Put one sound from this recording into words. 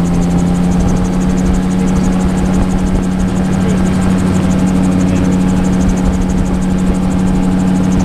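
A middle-aged man speaks through a headset microphone over the engine noise.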